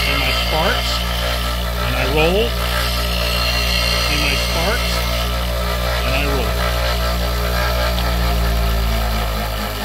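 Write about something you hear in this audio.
A bench grinder hums steadily.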